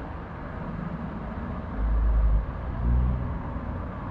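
A car drives past on an asphalt road.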